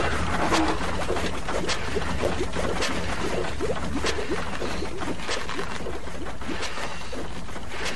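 A large machine rumbles and clatters steadily.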